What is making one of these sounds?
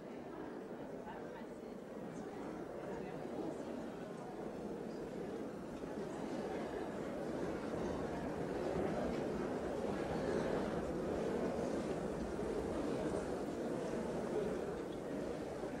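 A crowd of men and women chatter all around in a large echoing hall.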